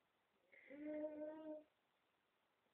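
A baby lets out a long, whiny cry close by.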